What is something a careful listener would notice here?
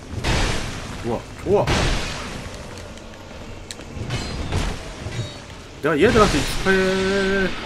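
A young man talks through a microphone.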